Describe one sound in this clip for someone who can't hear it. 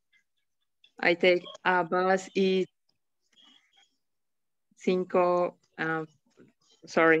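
A woman speaks slowly and clearly over an online call.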